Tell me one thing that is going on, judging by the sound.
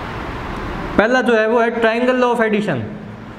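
A young man speaks clearly and with animation, close by.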